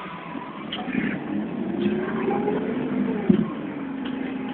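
A bus engine revs up and then settles.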